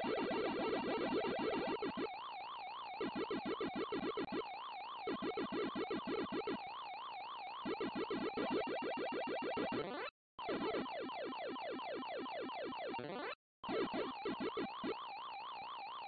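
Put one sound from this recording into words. A character gobbling dots makes rapid 8-bit console chirps in bursts.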